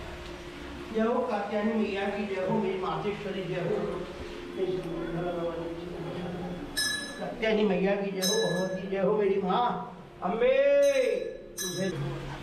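A woman chants prayers nearby.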